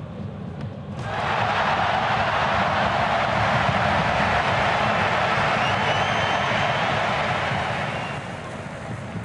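A stadium crowd roars and cheers loudly, then dies down.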